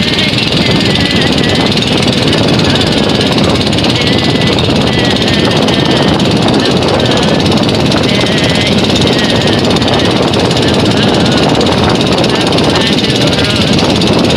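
A boat engine drones steadily and loudly close by.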